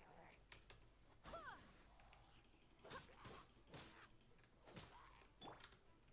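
Sword strikes land with sharp, quick hits.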